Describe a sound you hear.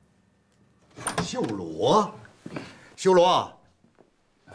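An elderly man calls out warmly with animation.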